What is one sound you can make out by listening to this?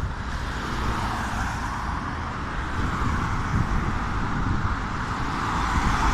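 A car drives past on the street nearby.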